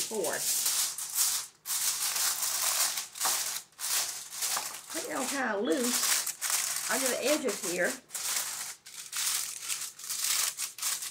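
Aluminium foil crinkles and rustles as it is folded and pressed.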